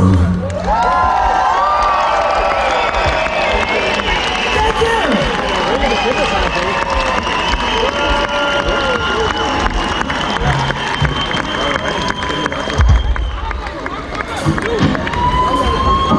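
A crowd cheers and whistles close by.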